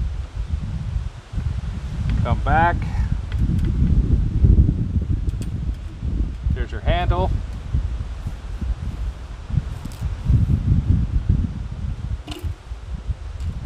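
A stiff metal wire scrapes and clicks as hands bend it.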